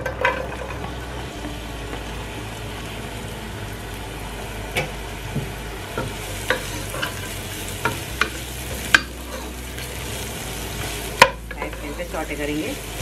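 Chopped onions sizzle in a hot pot.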